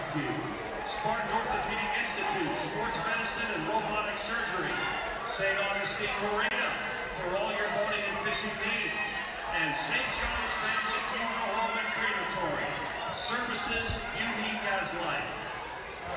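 A group of young women cheerleaders shout chants in unison.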